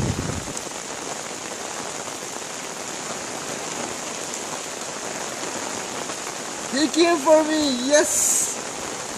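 Rain falls steadily on a wet paved surface outdoors.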